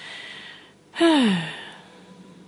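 A creature lets out a loud cry that falls in pitch.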